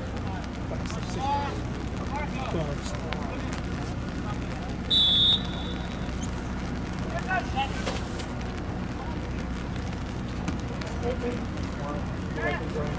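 Players shout to each other in the distance across an open field.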